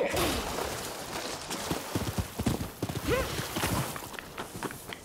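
Hooves gallop on soft ground.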